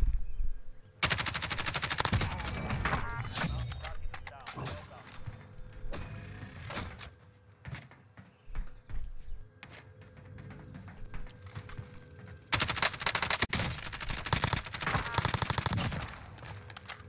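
Rapid gunfire bursts loudly in quick volleys.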